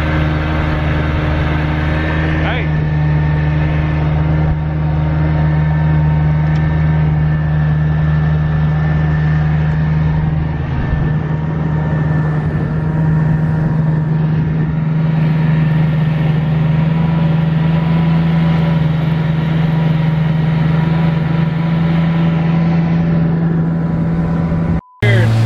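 An outboard motor drones steadily close by.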